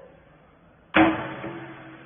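A lid bangs shut on a machine.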